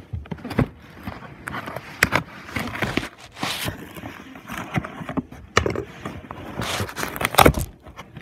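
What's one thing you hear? Cloth rubs and rustles right against the microphone.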